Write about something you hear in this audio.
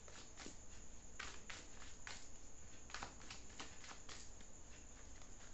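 Paper cards rustle and flick as they are shuffled.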